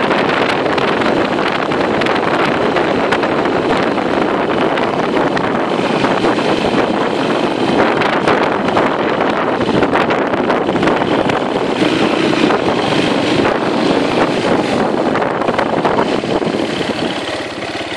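A small open vehicle's engine drones as it drives along.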